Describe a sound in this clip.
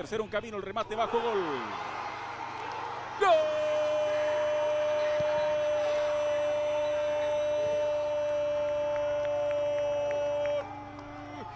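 A crowd cheers loudly in a stadium.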